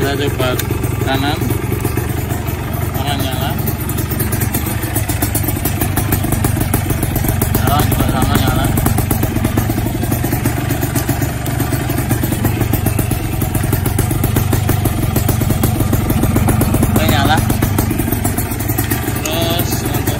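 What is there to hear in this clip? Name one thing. A motorcycle engine idles with a steady low throb.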